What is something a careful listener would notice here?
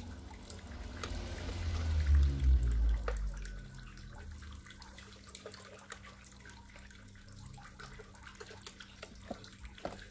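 A metal spatula scrapes and lifts food from a nonstick plate.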